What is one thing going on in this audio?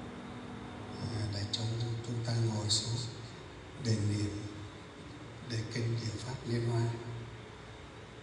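A woman speaks loudly through a microphone in an echoing hall.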